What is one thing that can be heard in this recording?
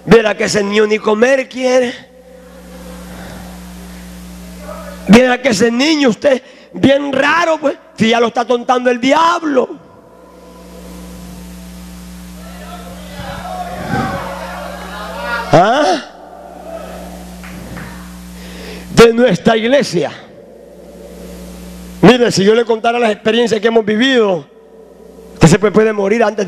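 A man speaks forcefully through a microphone in bursts with pauses.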